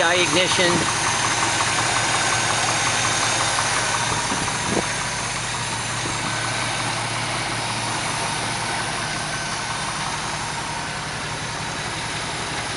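A car engine idles steadily close by with a fast, even rumble.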